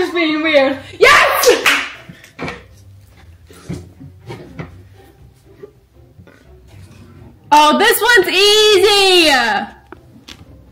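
A young woman laughs and squeals.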